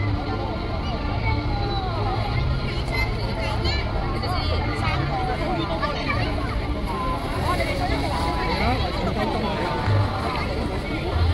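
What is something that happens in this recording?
A lively crowd of adults and children chatters outdoors all around.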